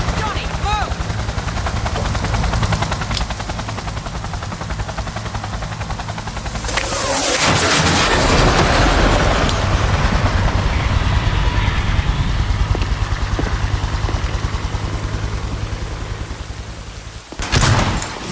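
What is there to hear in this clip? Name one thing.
A deep engine drone rumbles steadily.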